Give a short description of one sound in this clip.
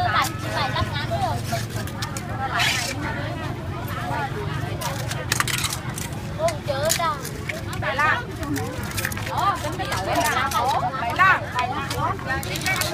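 A knife scrapes and clicks against shells.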